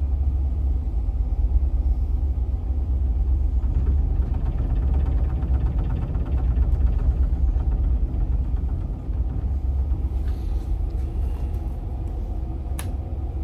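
A train engine rumbles steadily as the train runs along the track.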